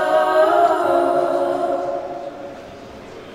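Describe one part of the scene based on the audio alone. Music plays through loudspeakers in a large hall.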